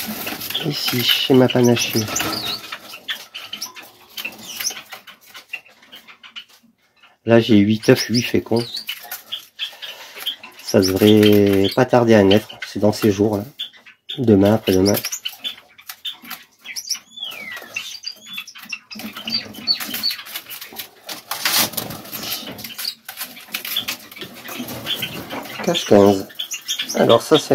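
Small finches chirp and cheep in short high calls.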